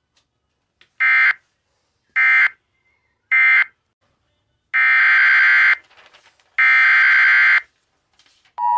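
Short, harsh electronic data bursts play through a small loudspeaker.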